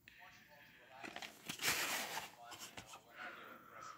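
A plastic tape case rattles and clicks as hands handle it.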